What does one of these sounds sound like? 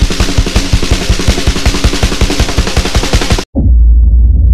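A rock band plays loudly with pounding drums and distorted guitar.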